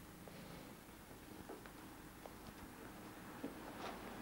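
Papers rustle softly as a woman handles them.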